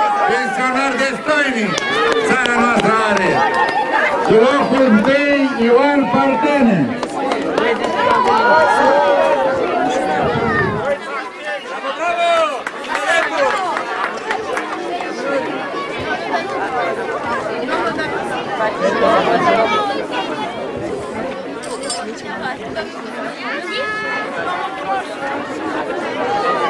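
A crowd of children chatters and calls out in the background.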